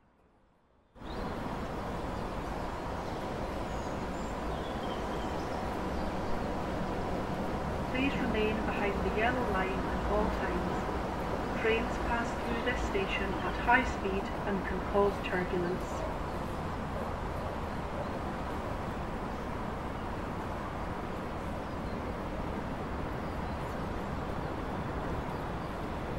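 A train's electric motors hum and rumble steadily as it rolls into a station.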